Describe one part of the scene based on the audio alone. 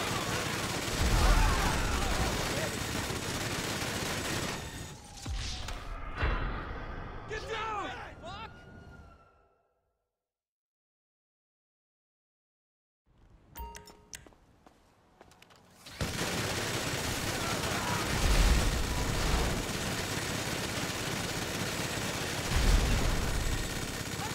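Explosions boom with deep thuds.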